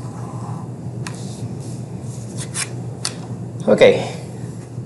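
A plastic drawing triangle slides across paper.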